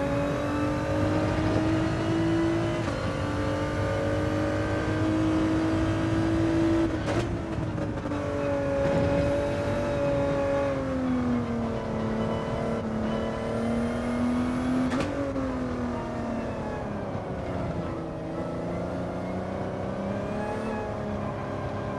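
A race car engine roars loudly, rising and falling in pitch as the car speeds up and slows down.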